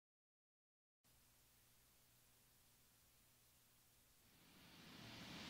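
An electric guitar plays softly.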